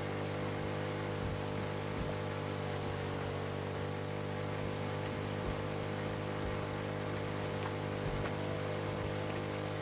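A boat motor drones steadily.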